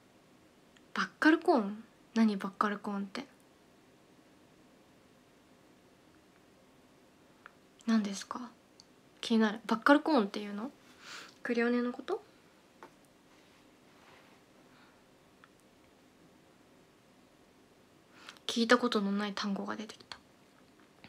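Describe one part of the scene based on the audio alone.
A young woman speaks softly and casually, close to a microphone, in short bursts.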